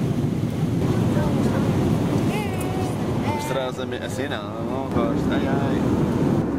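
A young boy talks excitedly up close.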